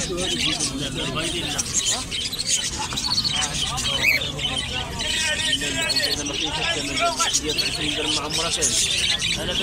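Many small birds chirp and twitter busily close by.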